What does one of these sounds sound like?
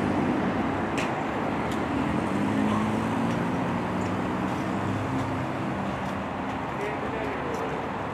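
A car engine idles nearby with a low steady hum.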